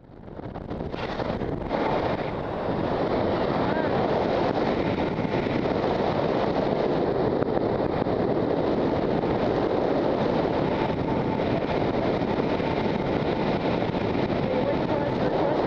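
Wind rushes loudly and steadily past a microphone outdoors.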